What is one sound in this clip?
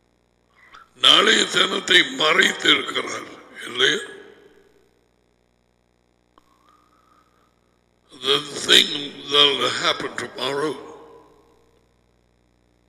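A middle-aged man speaks emphatically into a close headset microphone, in two bursts with a pause between.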